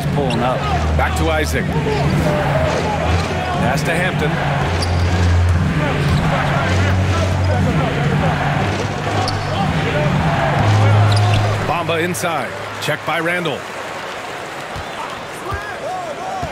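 A basketball bounces on a hardwood floor.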